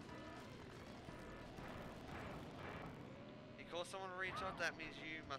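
A cartoon kart engine revs and hums.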